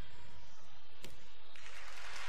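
A gymnast's feet land on a mat with a thud.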